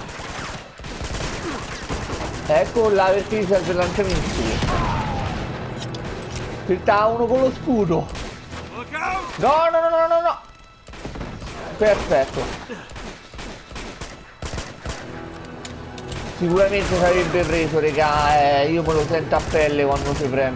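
Pistol shots ring out in quick bursts.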